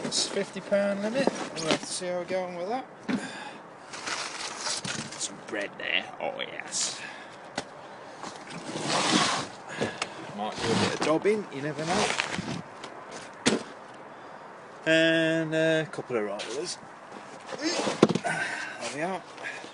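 Boxes thud and scrape as a man unloads them.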